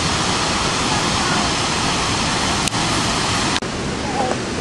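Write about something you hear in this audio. A young woman speaks close by, outdoors.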